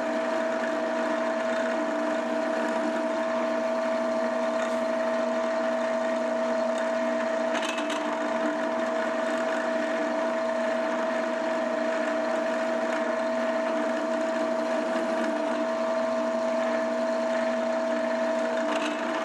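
A metal cutter grinds and chatters against steel.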